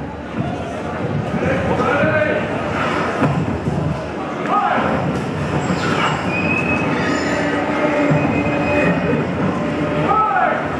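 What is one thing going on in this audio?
A film soundtrack plays loudly through loudspeakers in a large echoing hall.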